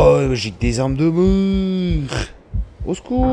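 A young man cries out in a long drawn-out wail.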